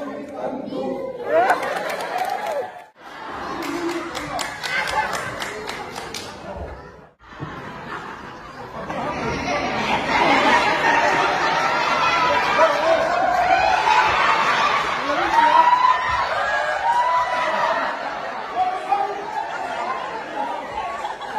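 A group of men sing together in an echoing hall.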